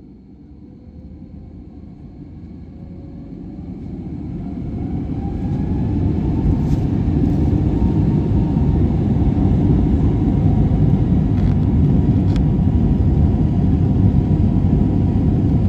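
Wheels rumble and thump over the runway.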